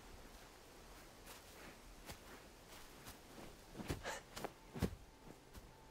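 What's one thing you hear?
Bare feet step softly on dry grass.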